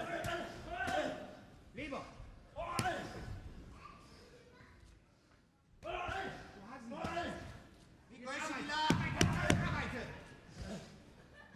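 Boxing gloves thud against bodies in quick punches.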